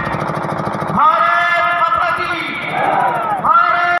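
A group of men shouts a slogan loudly together.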